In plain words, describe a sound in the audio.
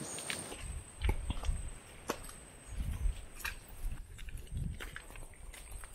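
Footsteps squelch on soft mud.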